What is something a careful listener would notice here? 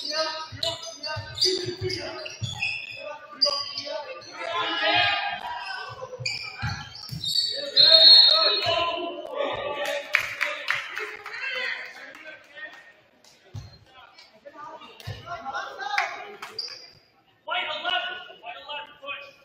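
Basketball players call out loudly in an echoing gym.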